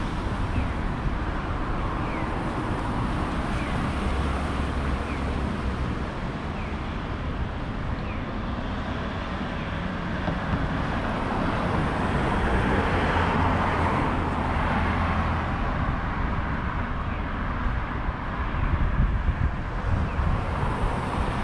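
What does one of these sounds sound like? Traffic hums steadily along a wide road outdoors.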